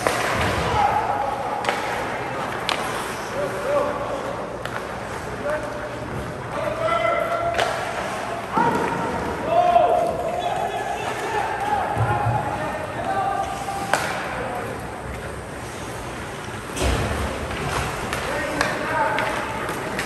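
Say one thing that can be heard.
Young players shout and call out across the rink.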